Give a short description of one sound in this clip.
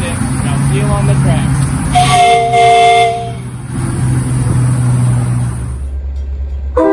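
A small steam locomotive chugs steadily along outdoors.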